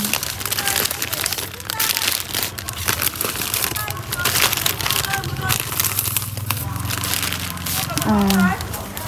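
Plastic snack bags crinkle and rustle in someone's hands.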